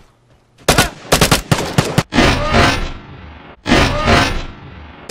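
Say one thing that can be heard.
A rifle fires loud shots in quick bursts, echoing outdoors.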